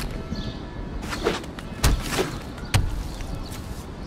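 Sharp magical impact sounds ring out as cards are played.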